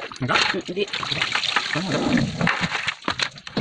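Water splashes as hands rub in a shallow tray.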